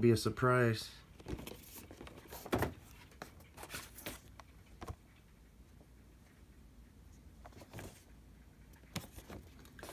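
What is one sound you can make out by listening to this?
Cardboard toy boxes tap and rustle as hands handle them.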